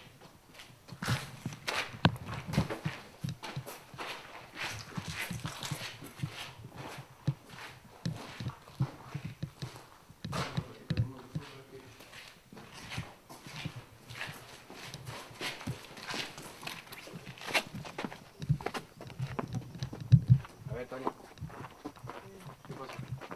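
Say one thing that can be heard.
Footsteps crunch on debris on the floor.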